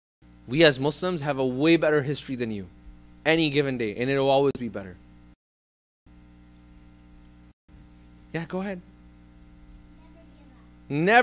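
A man speaks calmly into a microphone, with short pauses.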